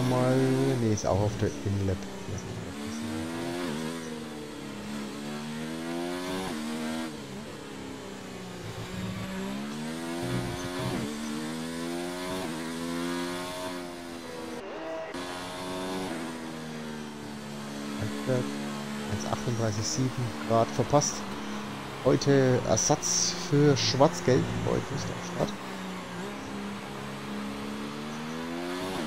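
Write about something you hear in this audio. A racing car engine screams at high revs, rising and falling in pitch with each gear change.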